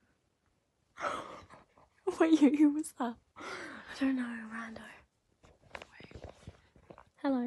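A young girl laughs loudly.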